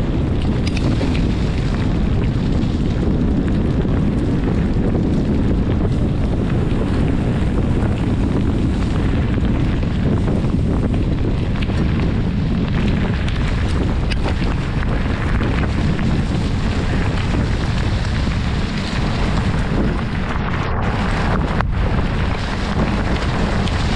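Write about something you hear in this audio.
Bicycle tyres crunch and roll over a gravel path.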